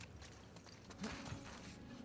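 A person climbs over a ledge with a rustle of clothes.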